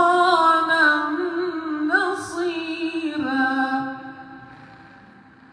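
A man chants melodically into a microphone, heard through loudspeakers.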